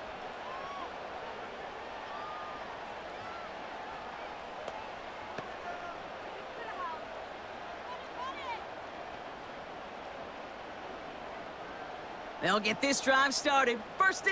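A stadium crowd murmurs and cheers steadily in the distance.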